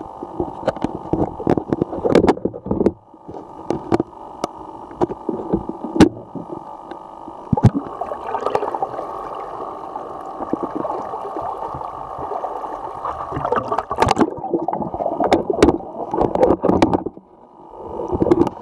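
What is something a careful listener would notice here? Water bubbles and knocks around an underwater microphone.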